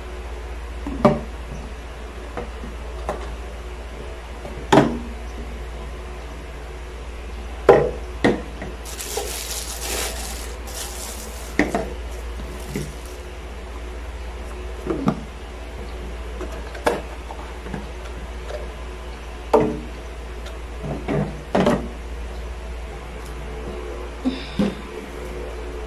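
Plastic containers knock and clack against each other.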